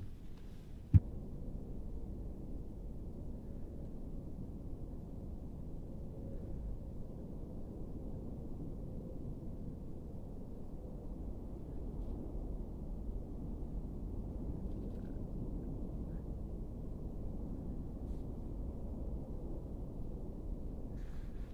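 A volcano roars with a deep, steady rumble.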